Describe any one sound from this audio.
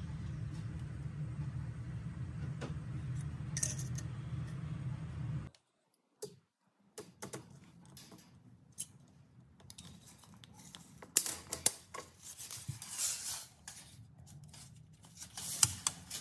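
A small metal clip clicks as it is handled.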